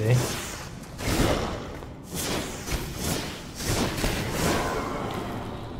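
A weapon swings and strikes in a fight.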